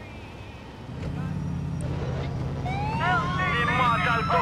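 A car engine revs and roars as the car pulls away.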